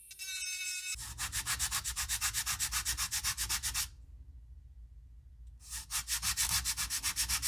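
A file rasps back and forth in quick strokes.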